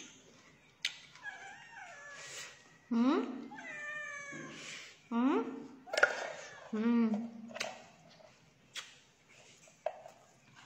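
A woman chews and slurps food noisily.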